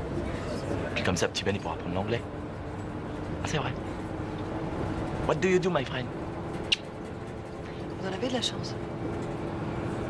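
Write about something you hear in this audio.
A young man speaks softly to a baby.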